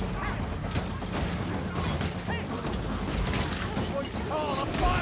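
Monsters snarl and growl in a fierce fight.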